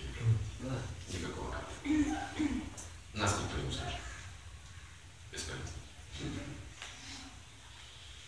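An elderly man speaks calmly, close by, with pauses between phrases.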